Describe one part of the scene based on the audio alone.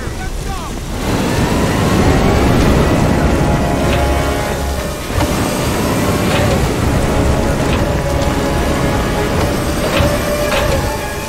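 An aircraft engine roars loudly and steadily nearby.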